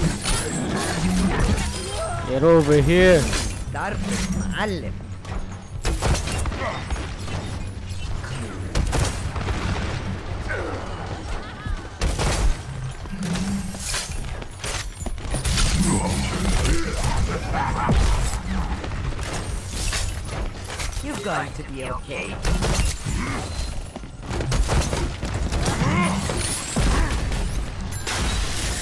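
A grenade launcher fires with dull thumps.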